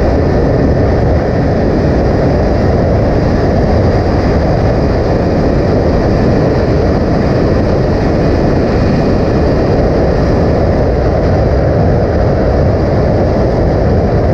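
A motorcycle engine hums steadily while riding at speed.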